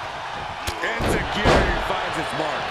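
A body thuds onto a wrestling ring mat.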